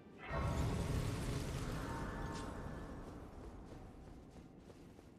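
A deep magical whoosh swells up suddenly and then slowly fades.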